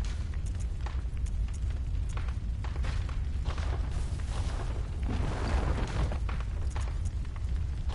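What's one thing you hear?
Menu selections click softly, one after another.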